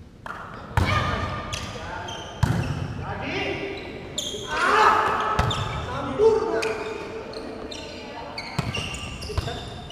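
A ball thumps on a hard court floor and echoes in a large hall.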